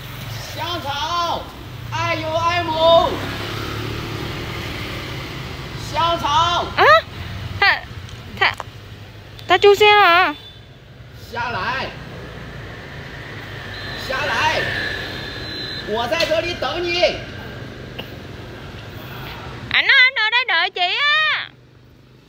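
A young man calls out loudly and sings-out, outdoors.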